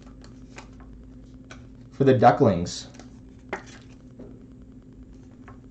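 Plastic card cases click and rustle softly in hands.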